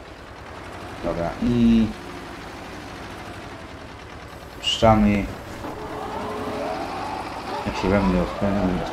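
A tractor engine idles with a low steady rumble.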